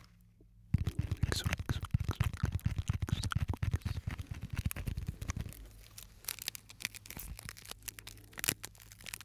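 Fingers tap and crinkle a small object very close to microphones.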